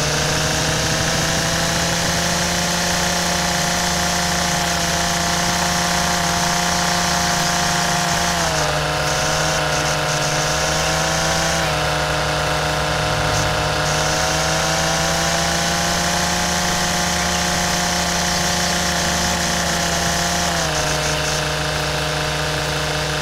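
A string trimmer engine whines steadily, its pitch dipping and rising slightly.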